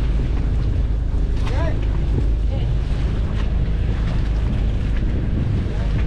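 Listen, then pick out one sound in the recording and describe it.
Waves splash against a boat's hull.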